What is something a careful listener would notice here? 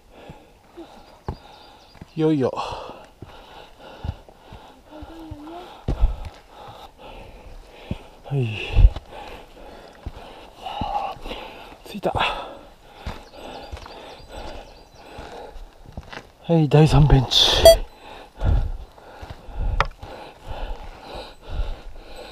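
Footsteps crunch and thud on a dirt trail.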